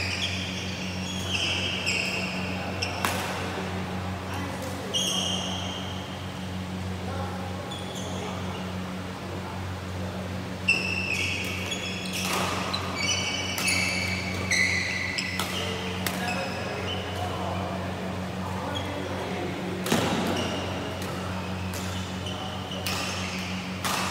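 A steady low hum fills a large echoing hall.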